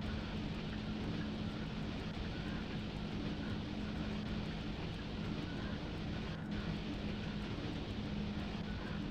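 Train wheels rumble and clatter over the track.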